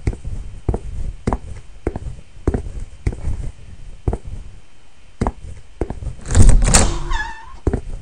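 Footsteps thud steadily along a hard floor.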